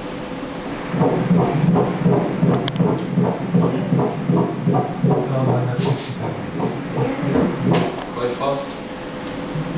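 A fetal heartbeat pulses fast and rhythmically as a whooshing sound from an ultrasound monitor's speaker.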